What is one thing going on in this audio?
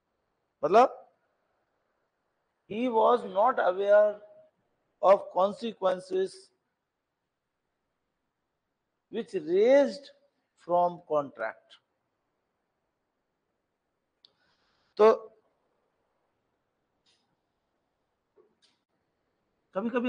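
A middle-aged man lectures calmly into a microphone, speaking in short bursts with pauses.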